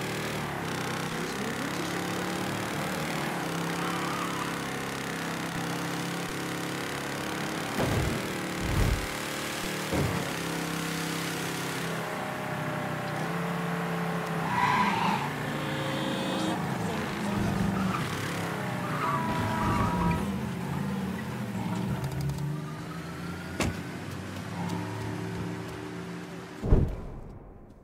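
A car engine roars steadily as a car speeds along.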